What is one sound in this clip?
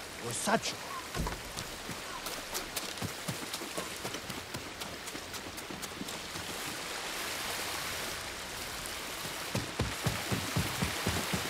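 Footsteps crunch on a path.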